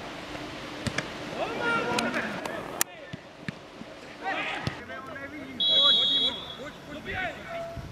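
Football players shout to each other across an open field.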